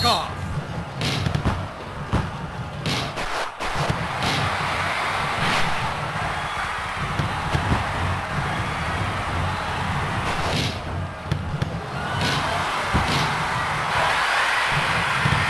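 A football is kicked with short, sharp thuds.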